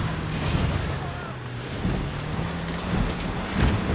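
Water splashes under tyres.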